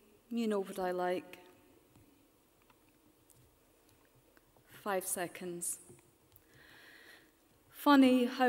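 A woman speaks calmly and close by, in short phrases.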